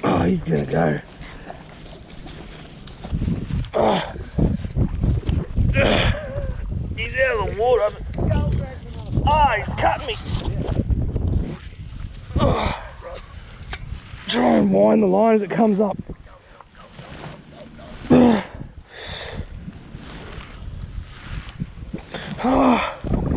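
A young man shouts and laughs close by.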